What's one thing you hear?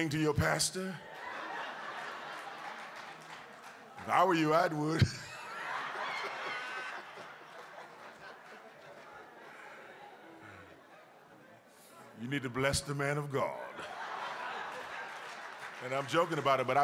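A congregation laughs together.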